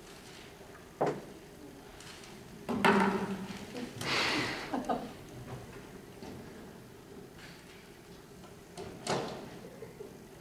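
A dancer thumps and slides on a wooden stage floor.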